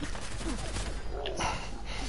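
A body is hit with a wet, heavy splatter.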